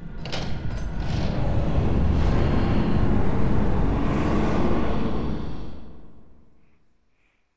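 Heavy doors creak and rumble open with a deep roar.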